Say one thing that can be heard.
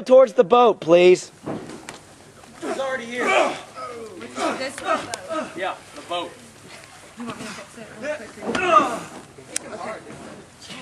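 Young men shout and cheer excitedly nearby, outdoors.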